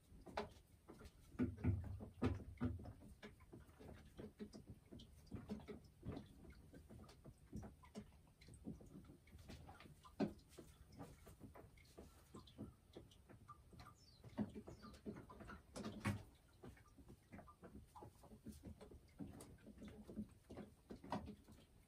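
A hen clucks softly and murmurs close by.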